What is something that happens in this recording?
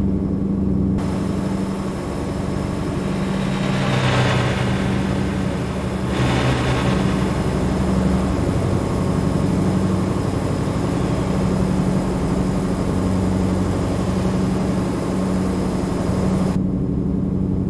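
Tyres roar on the road outside the truck.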